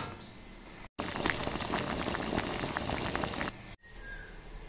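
Water bubbles in a pot.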